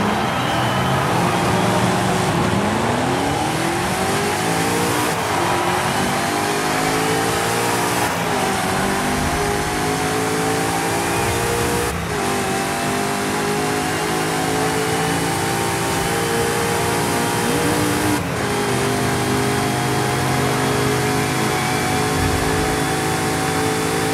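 A powerful car engine roars loudly, revving up through the gears as the car speeds up.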